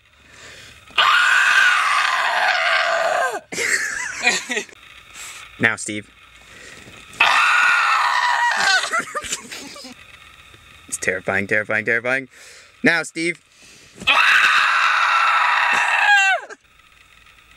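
A young man screams loudly close by, in long bursts.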